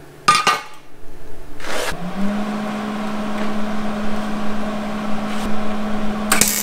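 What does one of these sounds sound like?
An electric welder crackles and buzzes steadily.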